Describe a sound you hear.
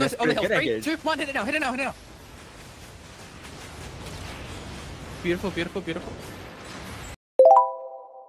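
Magic spells crackle and whoosh during a video game battle.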